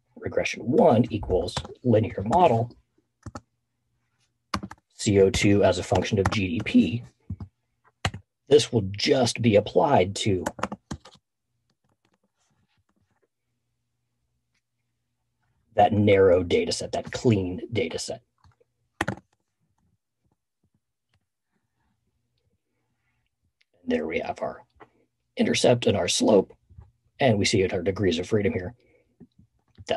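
A man talks calmly and close into a microphone, with pauses.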